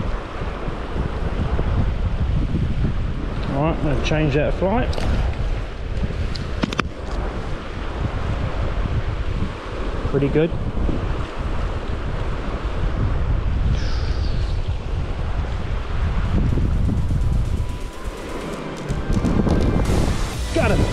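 A shallow river rushes and babbles close by.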